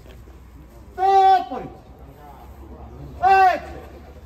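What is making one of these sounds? A man shouts out loudly twice.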